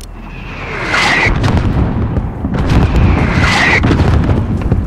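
Incoming rockets whoosh overhead.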